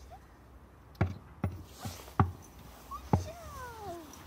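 A horse's hooves knock on a wooden box.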